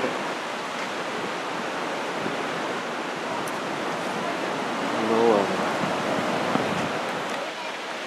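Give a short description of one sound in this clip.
An elderly man speaks calmly outdoors.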